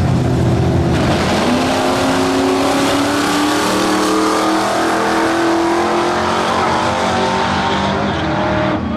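Car engines roar as cars launch and speed away, rising in pitch.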